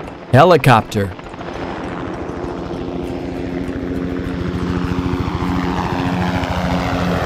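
A helicopter's rotor whirs steadily.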